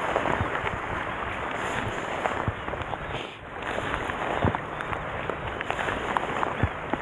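Waves slosh and splash against rocks close by.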